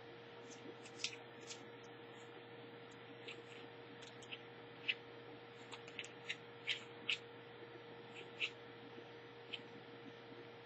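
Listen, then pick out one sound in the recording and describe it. Paper wrapping crinkles and tears as hands peel it off.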